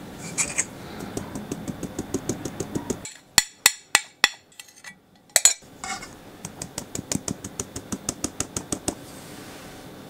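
A metal sieve taps rapidly against a bowl's rim.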